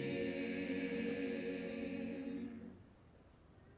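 A choir of young voices holds a sung chord, then stops.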